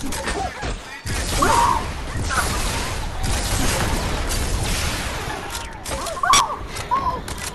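A gun fires a few shots.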